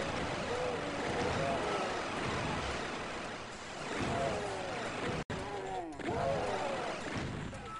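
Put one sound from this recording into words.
Monsters growl and snarl.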